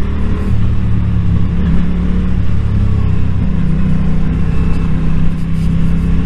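A motorcycle engine rumbles steadily up close, shifting pitch as it revs.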